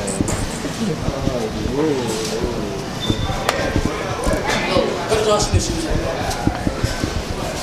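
Footsteps walk briskly on a hard floor.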